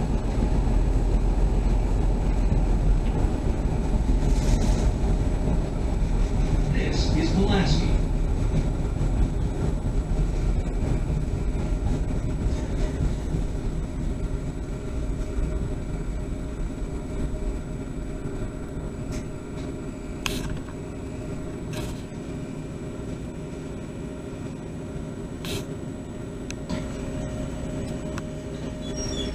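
A train rumbles steadily along the rails, slowly growing quieter.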